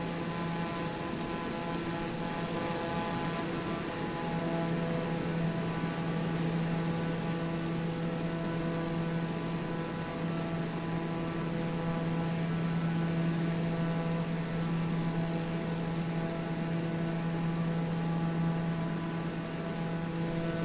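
An aircraft engine hums steadily with a droning whine.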